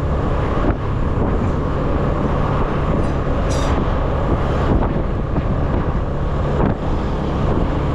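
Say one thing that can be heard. Other motorbikes and cars pass by on the road.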